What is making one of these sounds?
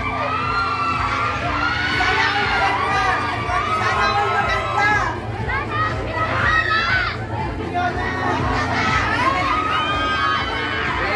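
A young woman talks cheerfully into a handheld microphone.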